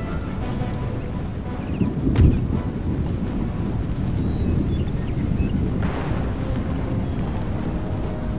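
Many soldiers' footsteps rumble across a field.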